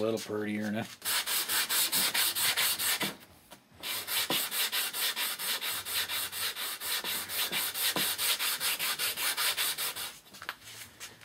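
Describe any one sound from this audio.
A sanding block rasps back and forth in quick, steady strokes.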